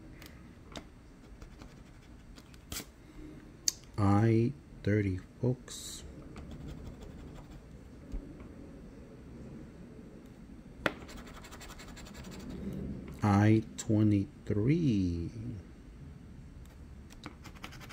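A coin scratches across a card.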